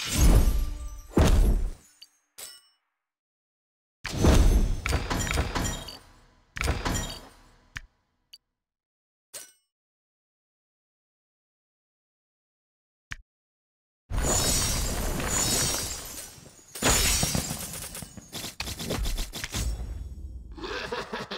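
Bright video game sound effects chime and burst in short flurries.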